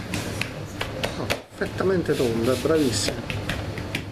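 Hands pat and press dough on a stone counter.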